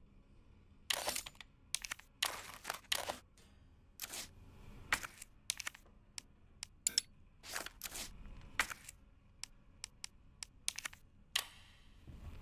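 Sharp menu clicks and beeps sound in quick bursts.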